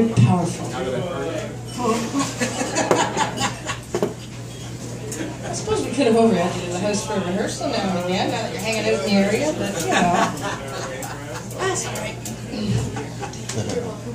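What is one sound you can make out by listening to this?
A man plays acoustic guitar.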